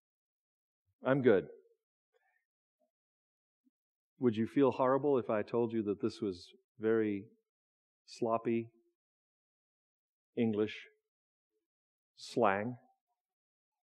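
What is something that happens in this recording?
A man speaks with animation through a microphone, in short phrases with pauses.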